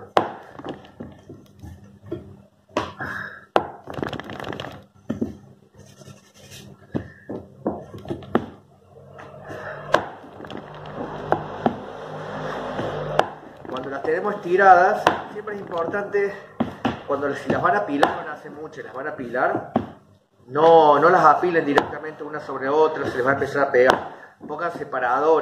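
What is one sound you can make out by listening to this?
A rolling pin thuds and rolls on a floured table.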